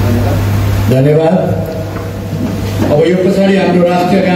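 A man speaks through a microphone and loudspeaker in a large echoing hall.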